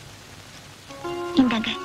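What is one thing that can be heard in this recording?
A harmonium starts to play a held chord.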